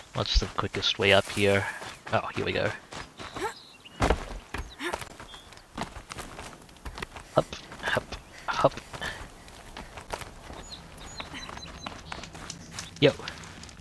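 Footsteps scuff over rocky ground.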